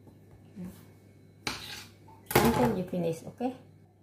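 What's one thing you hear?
A knife cuts through soft dough and taps the countertop.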